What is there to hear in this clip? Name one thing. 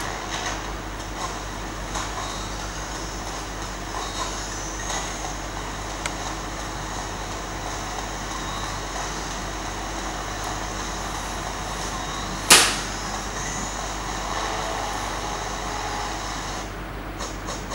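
Video game music and effects play from a small tablet speaker.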